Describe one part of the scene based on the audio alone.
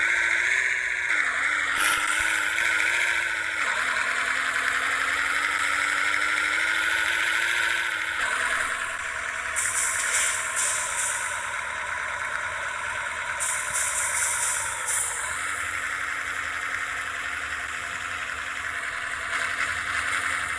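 A bus engine hums steadily and changes pitch as it shifts gears.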